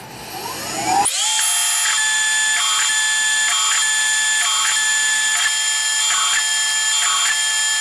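A milling machine runs with a steady high whine as it cuts metal.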